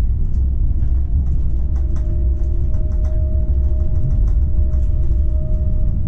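A tram's motor whines with a steady hum.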